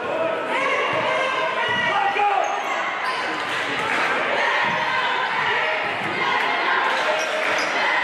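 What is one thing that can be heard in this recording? A basketball bounces on a hard floor.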